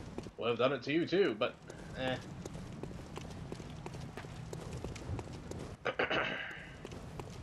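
Footsteps run quickly over stone paving.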